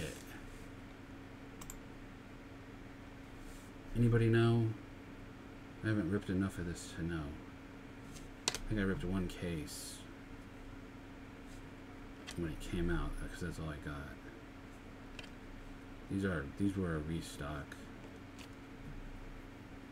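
Trading cards rustle softly as hands shuffle them.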